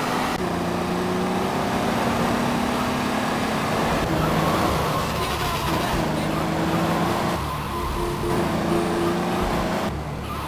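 A car engine hums steadily as a car drives.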